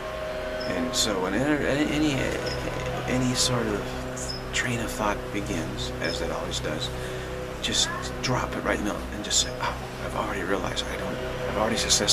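A middle-aged man speaks calmly close to a microphone.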